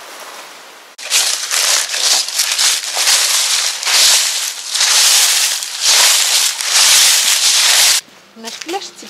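Dry leaves crunch and rustle loudly underfoot.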